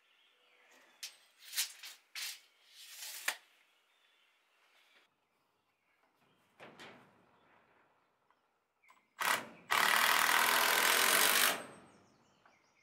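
A power drill whirs in short bursts overhead.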